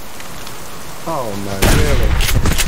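A bear growls.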